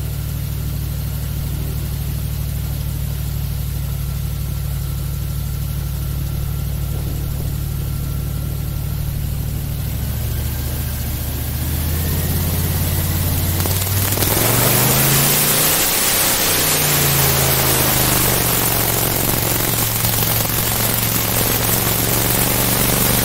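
An airboat's engine and propeller roar steadily, revving up as the boat speeds off.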